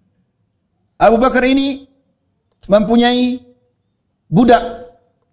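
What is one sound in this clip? A middle-aged man speaks calmly into a microphone in short phrases with pauses.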